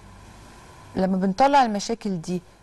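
A woman speaks with feeling into a close microphone.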